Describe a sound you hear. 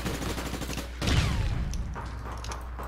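A loud explosion bursts nearby.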